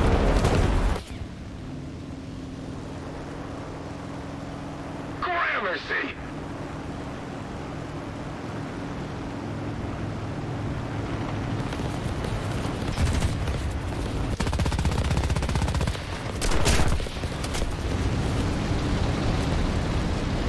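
A piston-engine warplane drones in flight.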